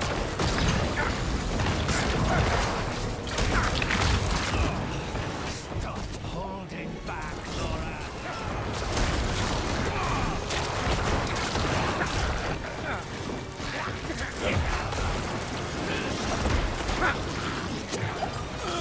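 Video game combat sounds clash and boom with spell blasts and hits.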